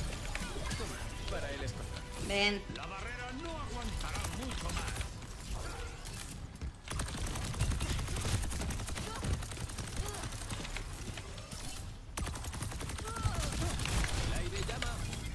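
Rapid energy weapon shots fire in quick bursts.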